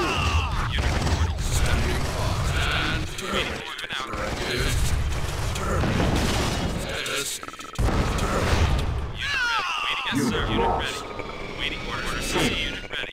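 Gunfire rattles in a battle.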